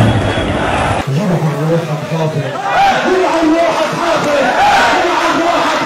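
A large crowd cheers and sings outdoors.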